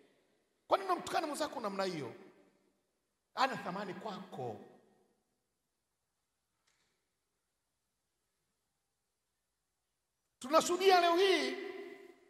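A man preaches forcefully into a microphone, in bursts with long pauses, his voice echoing in a large hall.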